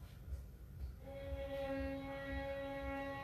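A fiddle plays long, steady notes.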